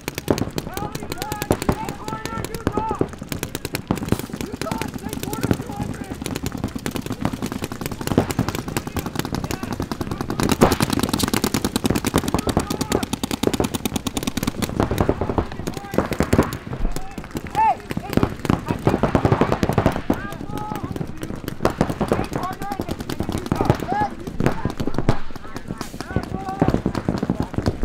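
A paintball gun fires in rapid bursts of sharp pops.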